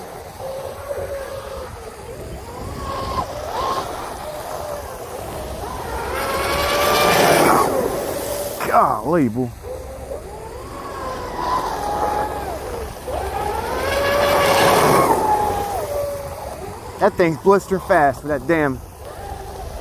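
A small electric motor whines high and rises and falls as a model boat races past, loudest as it passes close.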